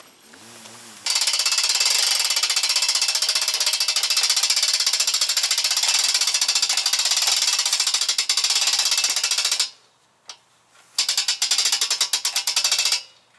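A small engine runs with a loud, high buzzing roar, cuts out briefly and starts again.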